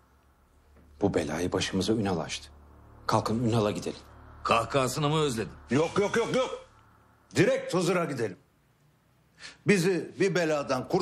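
An older man speaks forcefully nearby.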